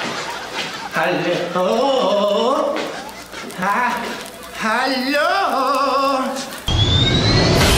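A man groans and whimpers in a wavering voice close by.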